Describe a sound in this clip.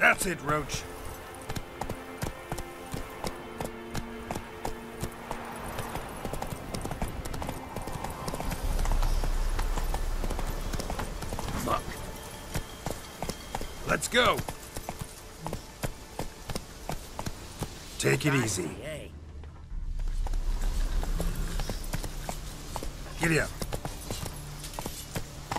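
A horse gallops with hooves pounding on a dirt path.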